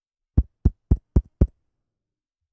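Fingers tap on a microphone, making sharp clicks.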